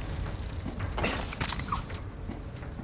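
Boots land on stone with a heavy thud.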